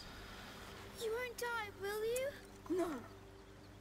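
A boy speaks softly.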